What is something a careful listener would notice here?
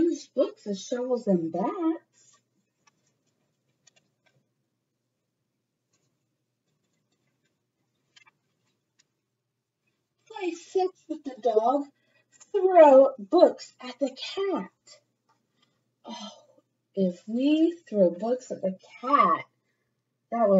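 A young woman reads aloud, close to the microphone.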